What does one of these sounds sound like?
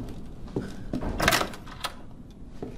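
A door handle rattles against a locked door.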